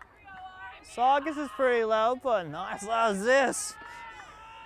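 Young girls chant a cheer loudly and together nearby.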